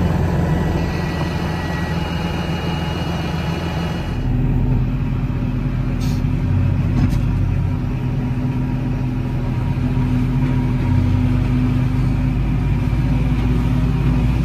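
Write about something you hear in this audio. A tractor engine drones loudly and steadily close by.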